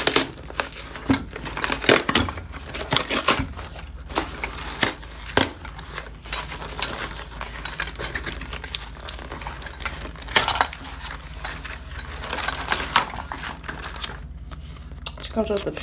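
Paper packaging crinkles and tears as hands rip it open.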